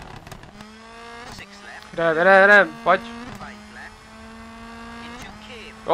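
A car exhaust pops and crackles as the car slows.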